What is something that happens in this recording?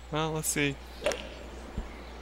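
A golf club strikes a ball with a sharp whack.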